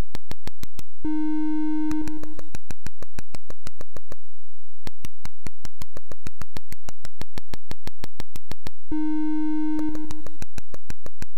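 A bright electronic chime rings out as a gem is collected.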